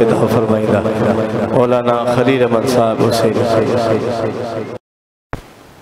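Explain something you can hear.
An elderly man chants loudly into a microphone, heard through loudspeakers.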